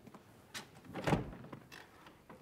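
A door opens with a dull thud.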